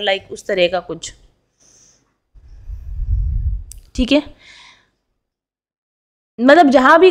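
A woman speaks calmly and close into a microphone.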